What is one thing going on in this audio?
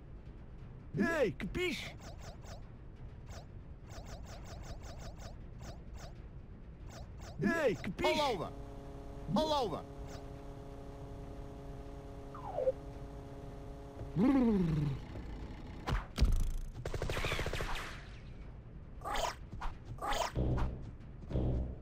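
Electronic game sound effects chirp and blip in short bursts.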